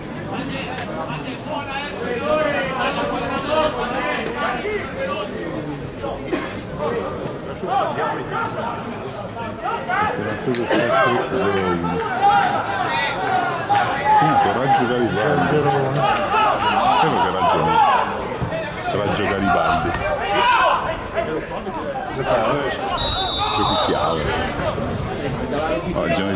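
Men talk and call out close by, outdoors.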